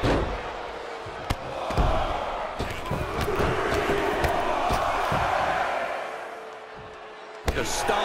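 Boots stomp hard on a wrestling mat.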